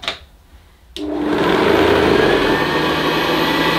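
A vacuum cleaner starts and whirs loudly and steadily.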